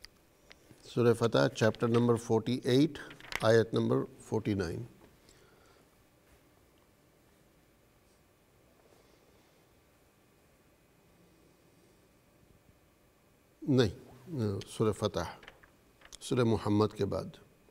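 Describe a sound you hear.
A middle-aged man speaks calmly into a close microphone, pausing between phrases.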